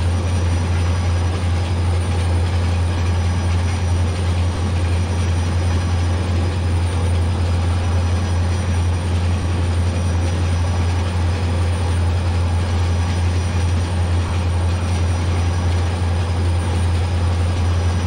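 A diesel locomotive engine rumbles steadily.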